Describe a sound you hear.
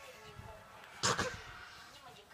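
A pillow thumps against a child.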